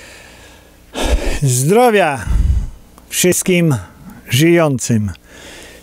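A middle-aged man speaks emphatically into a close microphone.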